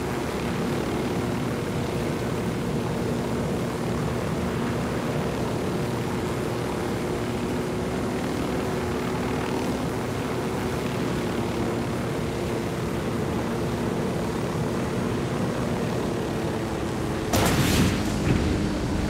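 A helicopter's rotor thumps and its engine drones steadily.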